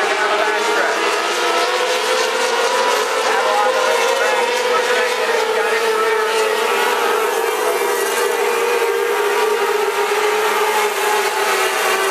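Racing car engines roar loudly around a dirt track.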